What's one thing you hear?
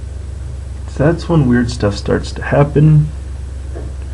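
A young man speaks briefly and casually, close by.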